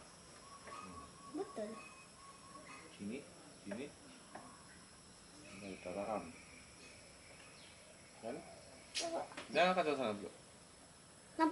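A man talks calmly to a child close by.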